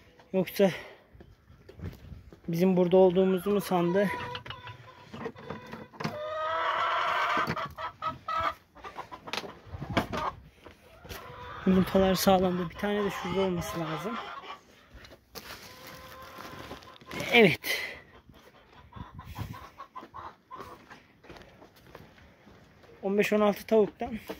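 Hens cluck and cackle nearby.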